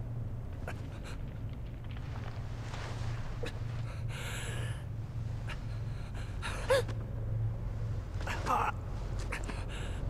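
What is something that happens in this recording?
A young man groans and breathes heavily.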